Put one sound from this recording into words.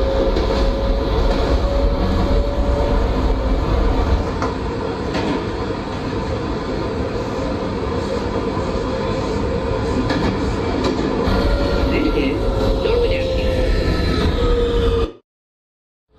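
Train wheels squeal with a high, steady whine.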